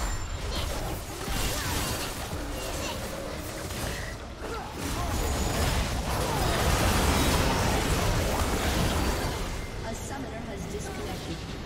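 Video game spell and weapon effects clash and crackle in a busy fight.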